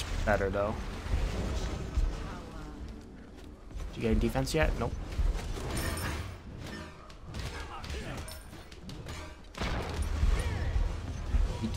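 Spell blasts crackle and whoosh in a fight.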